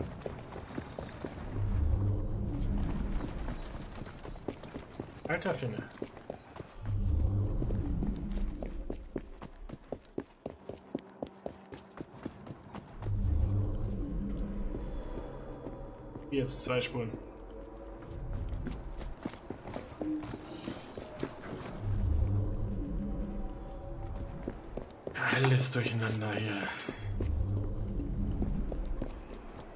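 Footsteps run on wet cobblestones.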